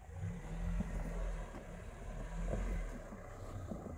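Wooden logs knock and thud under heavy tyres.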